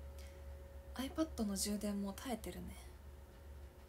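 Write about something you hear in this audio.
A young woman speaks briefly and softly close by.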